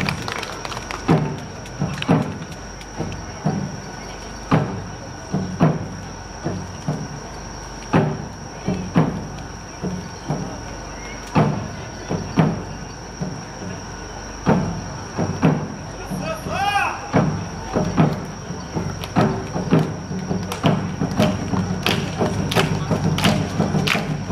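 Performers shout rhythmic calls together.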